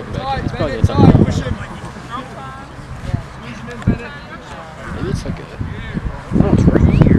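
Young players shout and call out across an open field.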